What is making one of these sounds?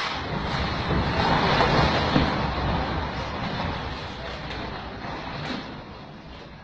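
Rubble crashes and clatters to the ground.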